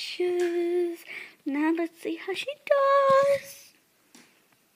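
A young girl sings out loudly up close.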